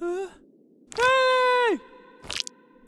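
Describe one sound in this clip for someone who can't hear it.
A young woman screams loudly in alarm.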